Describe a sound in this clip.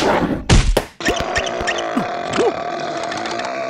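A small cartoon creature shrieks in surprise.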